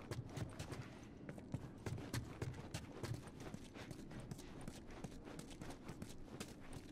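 Footsteps scuff on a concrete floor.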